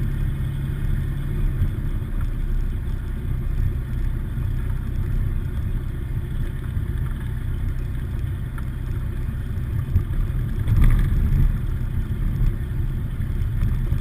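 A small propeller plane's engine drones steadily inside the cabin.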